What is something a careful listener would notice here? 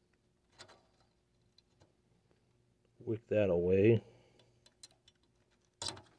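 A soldering iron taps and scrapes against metal parts.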